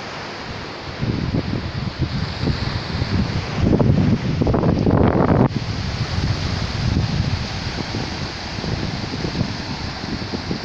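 Wind blusters loudly against the microphone outdoors.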